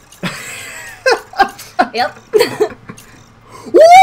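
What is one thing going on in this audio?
A young woman laughs, close to a microphone.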